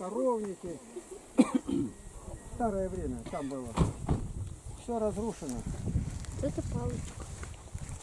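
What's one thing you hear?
A man speaks loudly outdoors, close by.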